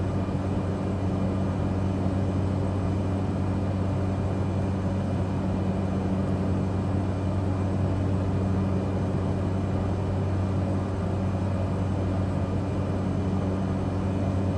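An aircraft engine drones steadily from inside the cockpit.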